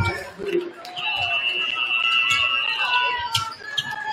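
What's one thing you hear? A referee's whistle blows a long shrill blast.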